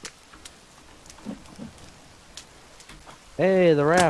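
A wooden log thumps as it is picked up.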